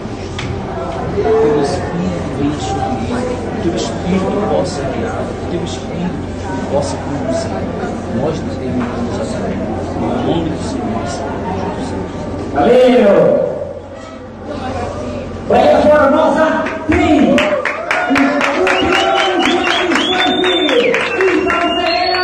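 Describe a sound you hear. A crowd of men and women shouts and talks excitedly nearby.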